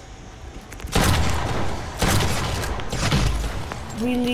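A shotgun fires with loud blasts.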